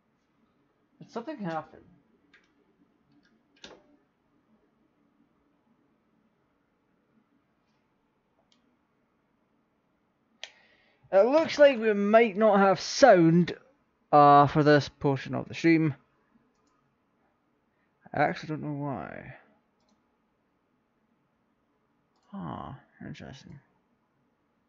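A young man talks casually and close to a microphone, in short bursts with pauses.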